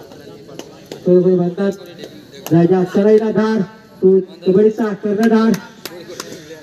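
A young man chants loudly and rapidly while running.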